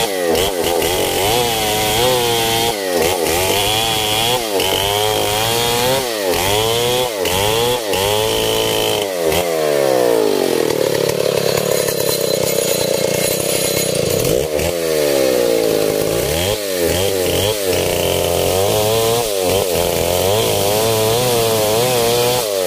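A chainsaw engine roars close by, revving up and down over and over.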